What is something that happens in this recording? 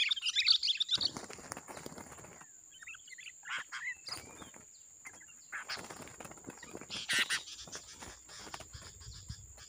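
Birds rustle in dry leaves on the ground.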